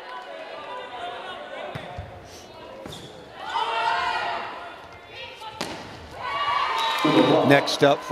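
A volleyball is struck hard during a serve and rally.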